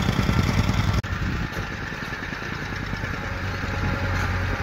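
A bulldozer engine rumbles nearby.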